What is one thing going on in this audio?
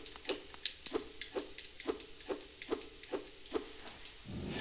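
Quick light footsteps patter in an even rhythm.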